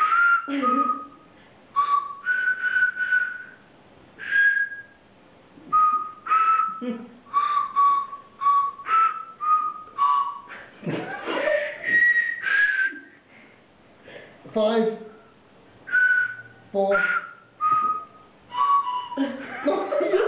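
A young woman blows short, high notes on a small toy whistle.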